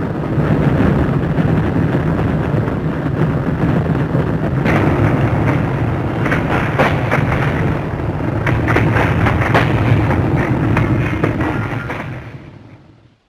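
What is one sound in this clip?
Burning timbers crackle and pop.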